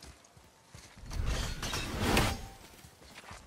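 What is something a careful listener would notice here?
A heavy body thuds and scrapes while climbing over a log.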